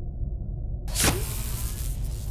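A mechanical hand shoots out with a sudden whoosh.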